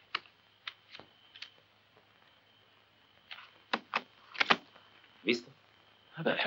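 Playing cards slap and flick onto a wooden table.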